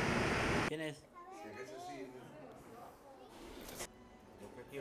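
A young child speaks close by.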